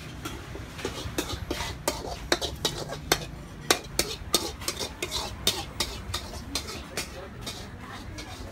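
A metal spatula scrapes around a metal wok.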